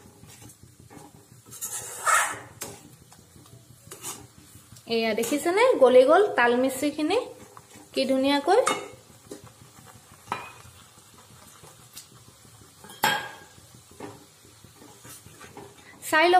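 A metal spoon scrapes and clinks against a metal pan.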